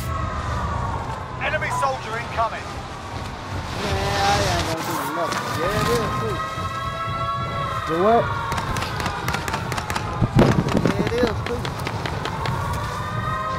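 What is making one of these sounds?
Wind rushes loudly past during a freefall.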